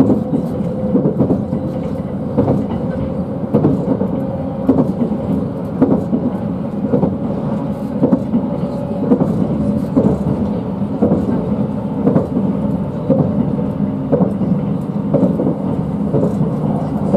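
Train wheels knock rhythmically over rail joints.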